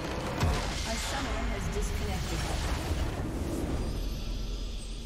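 Magic blasts and impacts crash loudly in a hectic battle.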